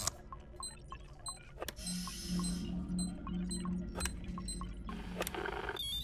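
An electronic device beeps in short, evenly spaced pips.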